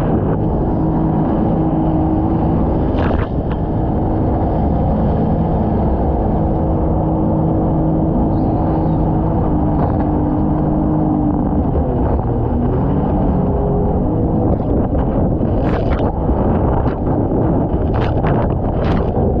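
A motorboat engine drones steadily up close.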